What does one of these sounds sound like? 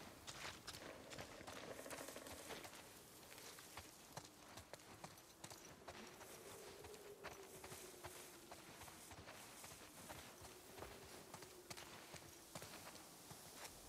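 Footsteps crunch through leaves and undergrowth.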